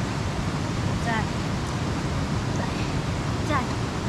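A young woman speaks briefly.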